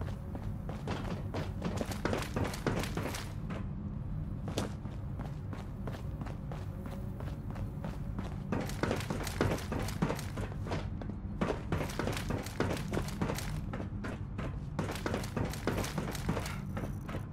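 Footsteps clank quickly on metal grating.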